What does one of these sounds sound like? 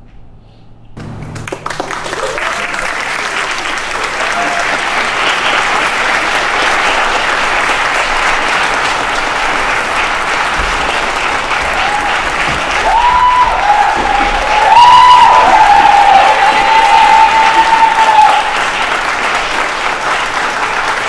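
A large crowd cheers and claps loudly.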